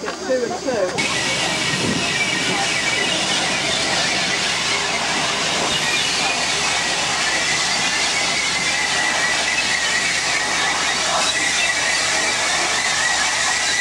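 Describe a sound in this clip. A steam locomotive hisses and rumbles as it pulls in.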